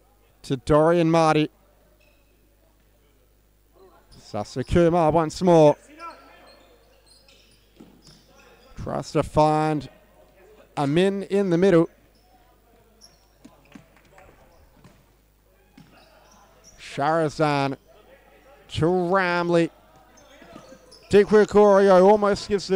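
A ball is kicked and bounces on a hard indoor floor.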